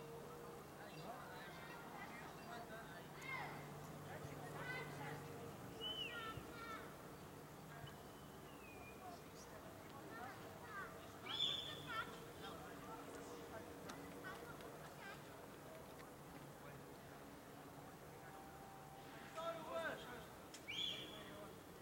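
Young men shout and call to each other at a distance outdoors.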